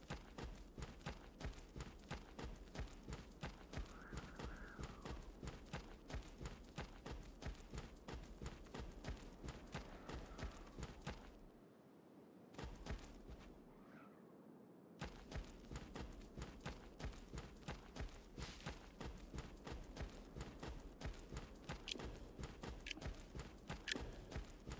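Quick footsteps crunch on snow.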